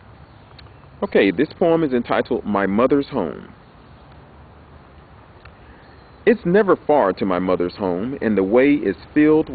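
A man speaks calmly and close up, in two short bursts.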